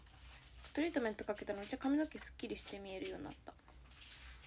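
A young woman speaks softly and close to a microphone.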